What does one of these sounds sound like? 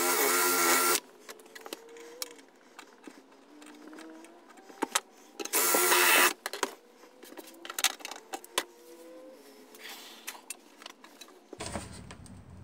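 Small tools tap and click against a metal box.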